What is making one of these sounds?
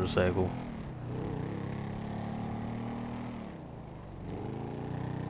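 A motorcycle engine hums steadily as the bike rides along, easing off briefly before picking up again.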